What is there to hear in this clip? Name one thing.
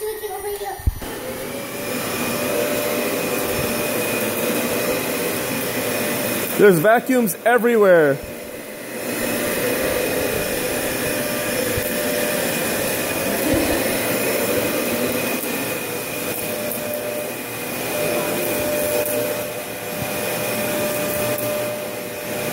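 A vacuum cleaner hums steadily nearby.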